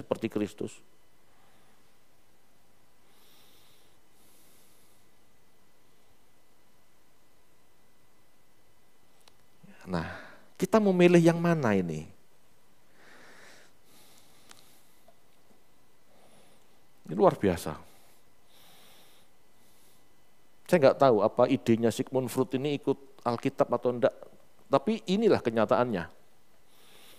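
A man speaks calmly into a headset microphone, in short bursts with long pauses.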